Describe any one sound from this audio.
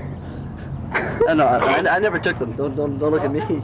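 A young man talks and laughs, close by.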